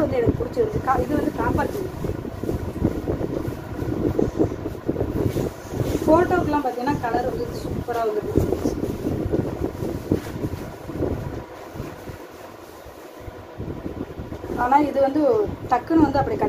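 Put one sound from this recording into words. Cloth rustles and swishes as it is handled close by.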